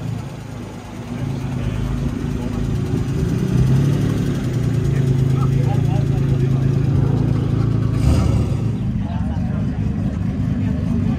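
People chat quietly at a distance outdoors.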